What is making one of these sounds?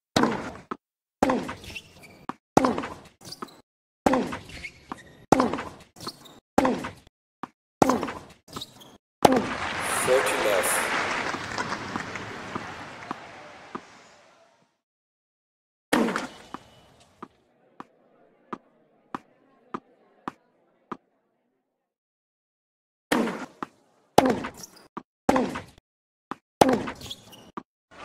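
A tennis ball bounces repeatedly off a hard court.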